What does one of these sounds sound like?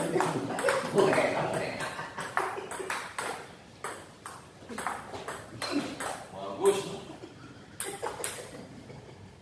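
A table tennis ball clicks back and forth off paddles and the table in a quick rally.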